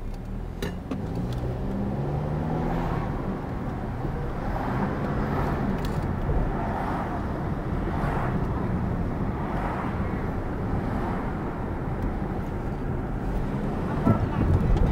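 A car engine hums and tyres roll on the road as the car drives off and picks up speed.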